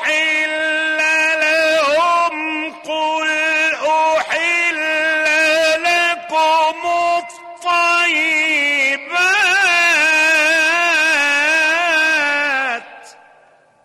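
An elderly man chants in a long, melodic voice through a microphone, with an echo.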